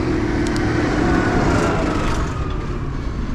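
A tractor engine rumbles close by and fades as it passes.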